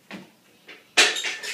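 A loaded barbell clanks onto a metal rack.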